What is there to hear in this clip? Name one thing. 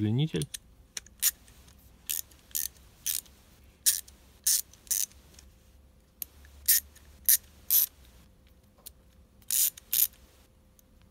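A ratchet wrench clicks in sharp bursts.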